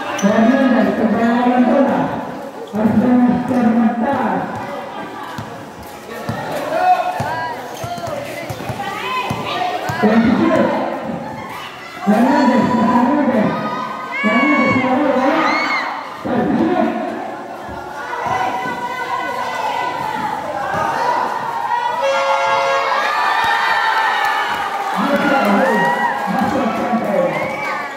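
A crowd of spectators shouts and cheers nearby, outdoors.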